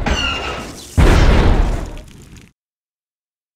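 A building explodes with a loud, rumbling blast.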